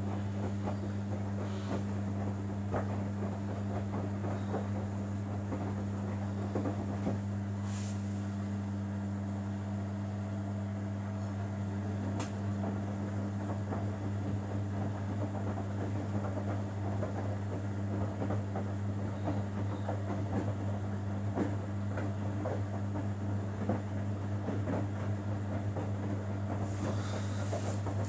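Wet laundry sloshes and tumbles in soapy water inside a washing machine drum.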